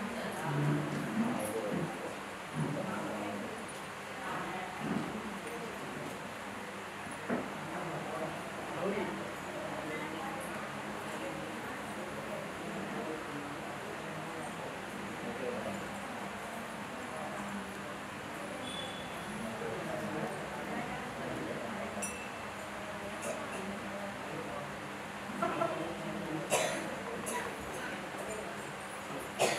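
A crowd of women and men murmurs and chats softly nearby.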